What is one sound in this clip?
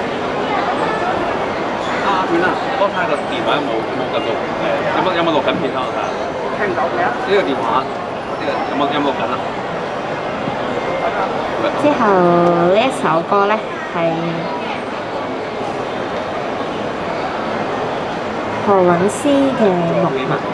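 A young woman sings into a microphone over a loudspeaker.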